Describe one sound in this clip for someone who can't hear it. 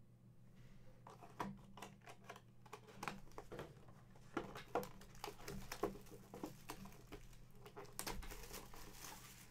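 Hands handle and crinkle plastic wrappers.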